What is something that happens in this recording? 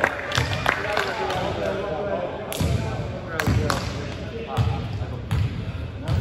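Young men talk and call out across an echoing gym.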